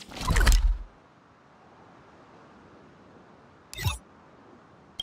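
Game menu sounds whoosh as the map changes.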